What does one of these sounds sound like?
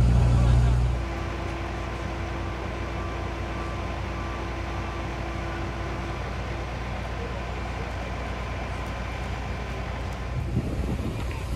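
A fire engine's motor idles steadily.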